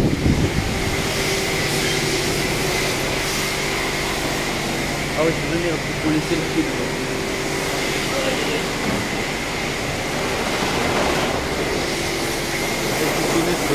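A scooter engine idles steadily close by.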